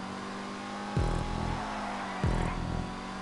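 A racing car engine shifts gears with sudden drops in pitch.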